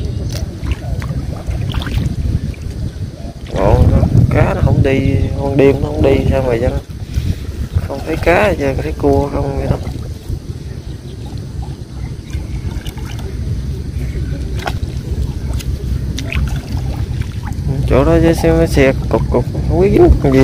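Water sloshes around a man wading.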